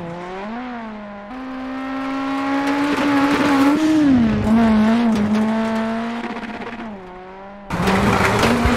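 A rally car engine revs loudly as it approaches and passes by.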